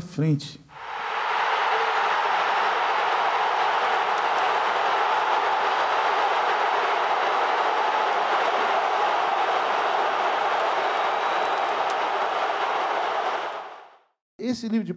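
A huge stadium crowd roars and cheers.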